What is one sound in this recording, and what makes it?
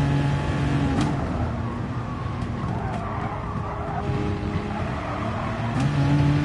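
A racing car engine slows and burbles as the car brakes for a corner.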